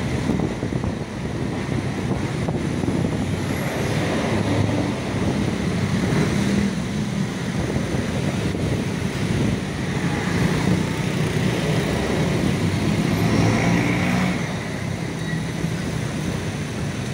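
City traffic rumbles past steadily.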